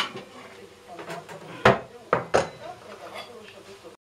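A plate clinks against a counter.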